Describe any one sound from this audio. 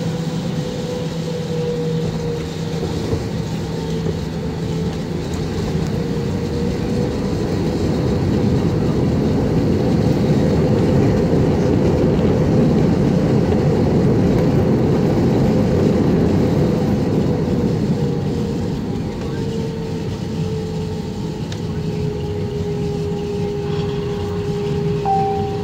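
A jet engine hums and roars steadily, heard from inside a plane cabin.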